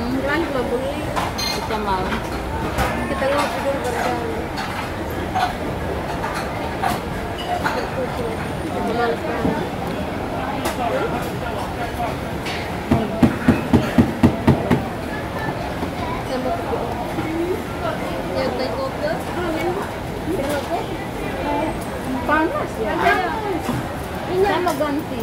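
Several women talk casually close by.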